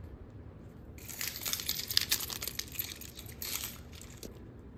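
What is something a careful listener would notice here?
A bunch of metal keys jingles in a hand.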